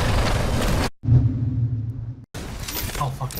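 A deep logo chime swells and rings.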